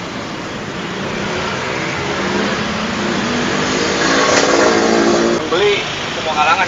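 Motorcycle engines hum as traffic passes close by.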